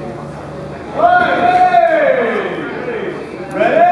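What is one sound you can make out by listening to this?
A young man shouts loudly close by.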